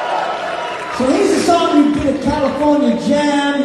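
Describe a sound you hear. A man sings loudly into a microphone over the band.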